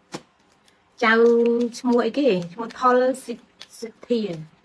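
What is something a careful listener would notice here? A woman speaks with animation, close to the microphone.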